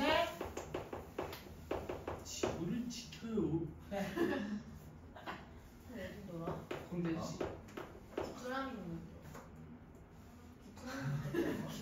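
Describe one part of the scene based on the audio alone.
A young woman speaks calmly and clearly nearby, as if teaching.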